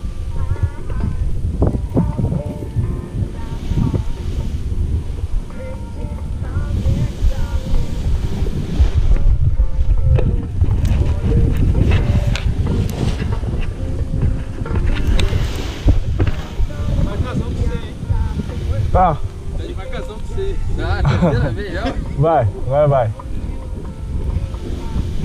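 Wind rushes and buffets loudly against the microphone outdoors.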